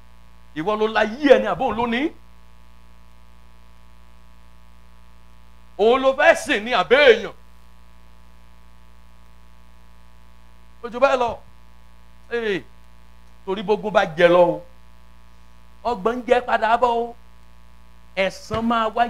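A man preaches loudly in short bursts through loudspeakers in an echoing hall.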